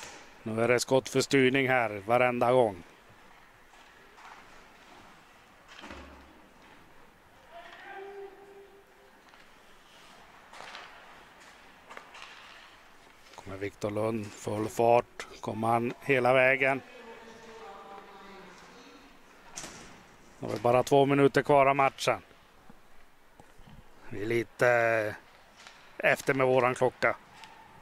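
Ice skates scrape and swish across an ice rink.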